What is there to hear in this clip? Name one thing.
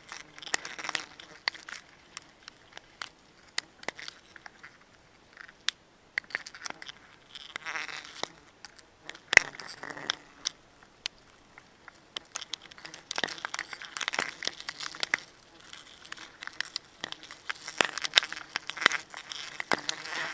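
Leaves and branches rustle and creak as a climber moves in a tree.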